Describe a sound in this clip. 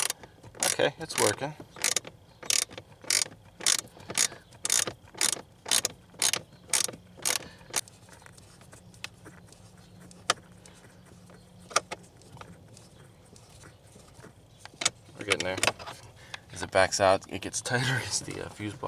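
Plastic clicks and rattles softly as a hand handles wires.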